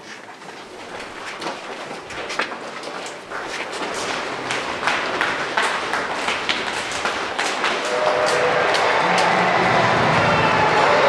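Football boots clatter on a hard floor.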